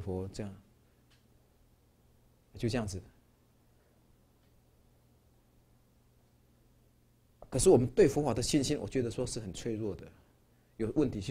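A middle-aged man speaks calmly through a microphone, pausing between phrases.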